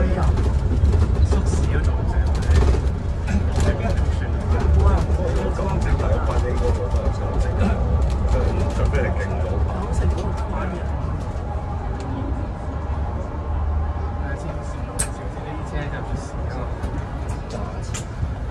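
A bus engine hums low and steady from inside the bus.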